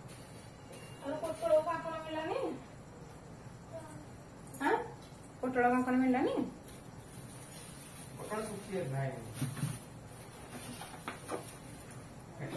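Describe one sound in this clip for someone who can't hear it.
A woman speaks close by in a lively voice.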